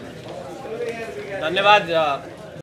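A middle-aged man speaks into microphones.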